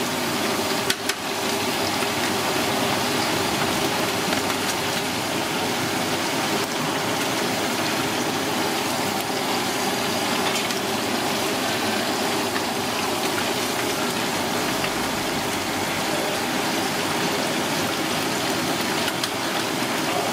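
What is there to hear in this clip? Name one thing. Hot oil sizzles and crackles loudly and steadily.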